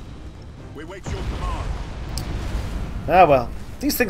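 A deep explosion booms and rumbles.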